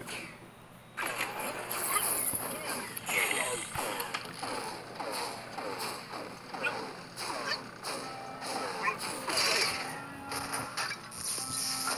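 Fireballs whoosh and pop in quick succession.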